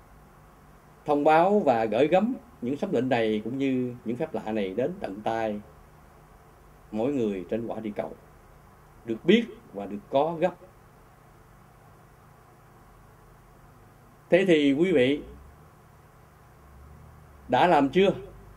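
A middle-aged man speaks calmly and earnestly into a nearby microphone, with pauses.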